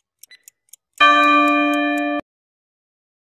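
A buzzer sounds loudly for about a second.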